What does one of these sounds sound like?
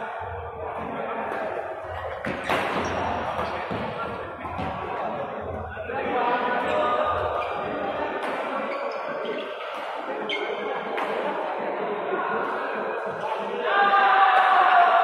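Shuttlecocks are struck with sharp taps of badminton rackets.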